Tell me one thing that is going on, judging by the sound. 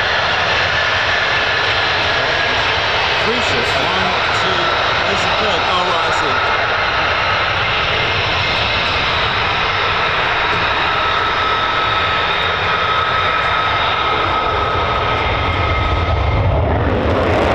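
A jet engine whines steadily as a fighter jet taxis.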